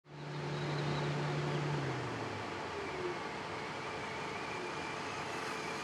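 Small tyres crunch over gravel.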